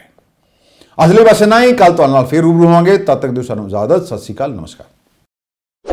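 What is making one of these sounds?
A middle-aged man speaks calmly into a microphone, like a news presenter.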